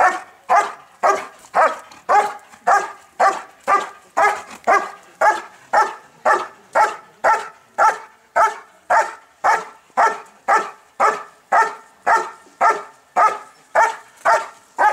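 A dog barks loudly and repeatedly, close by, in a steady rhythm.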